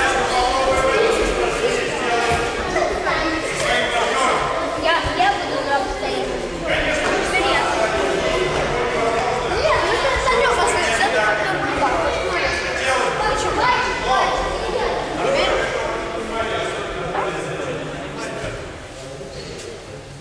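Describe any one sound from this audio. Many children chatter and call out together in a large echoing hall.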